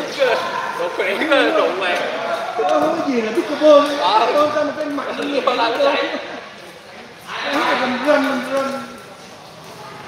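Men talk casually nearby.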